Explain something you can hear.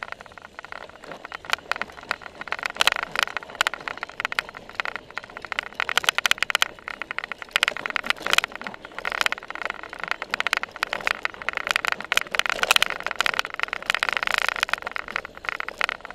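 Bicycles rattle and clatter over bumpy grass.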